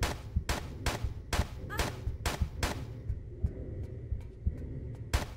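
Quick footsteps run on a hard metal floor.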